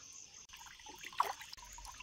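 Water splashes in a basin.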